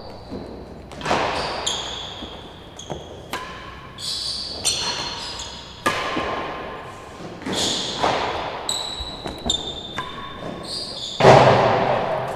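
A ball is struck hard with a racket and echoes around a large hall.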